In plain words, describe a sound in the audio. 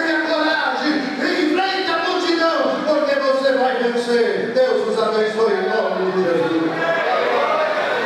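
A man speaks with animation into a microphone, heard through loudspeakers in a large room.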